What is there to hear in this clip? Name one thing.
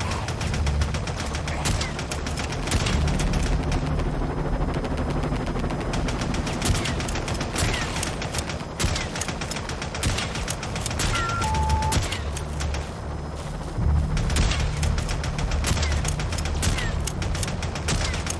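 A helicopter's rotor thumps and drones.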